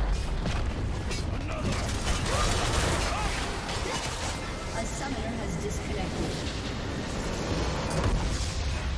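Magic spells crackle and burst in a busy fight.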